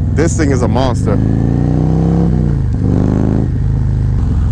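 A motorcycle engine revs up and shifts through gears.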